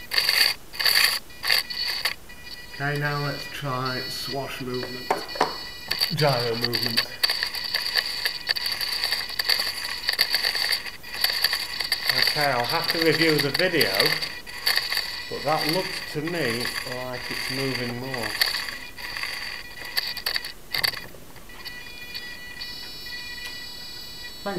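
Small servo motors whir and buzz in short bursts.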